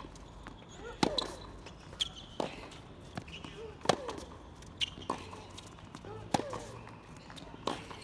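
Tennis balls are struck back and forth with sharp pops of rackets.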